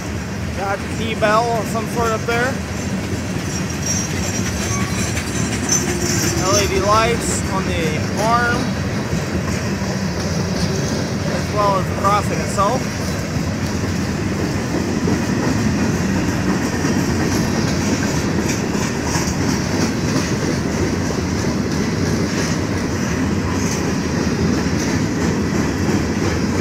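Train wheels clatter over the rails.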